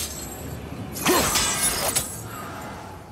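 An axe strikes stone with a sharp metallic clang.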